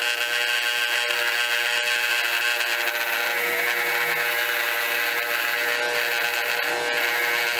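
A blade rasps and hisses against a spinning buffing wheel.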